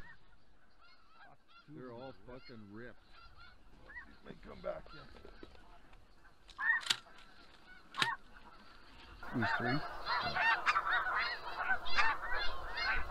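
A goose call honks repeatedly.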